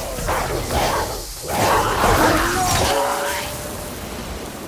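Lightning crackles and buzzes loudly.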